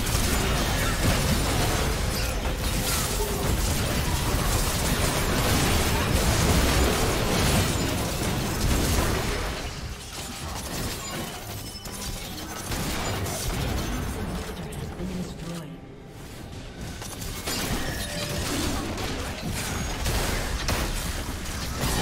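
Game spell effects crackle, whoosh and boom during a busy fight.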